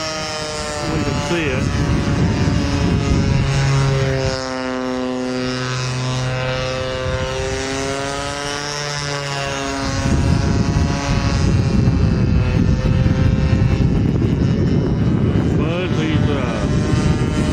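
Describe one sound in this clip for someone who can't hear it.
A model plane's small engine buzzes overhead, its pitch rising and falling.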